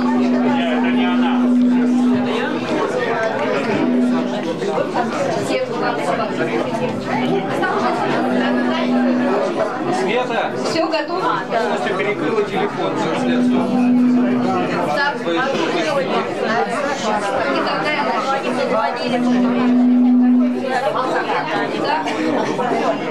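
A group of singers performs through loudspeakers.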